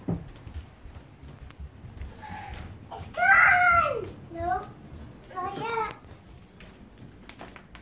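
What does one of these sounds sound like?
Bare feet patter on a hard floor.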